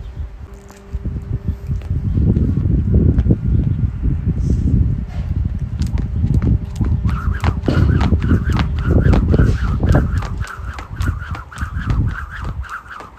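Feet thud on the ground as a woman jumps.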